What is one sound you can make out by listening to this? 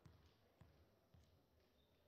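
A volleyball bounces on a hard floor.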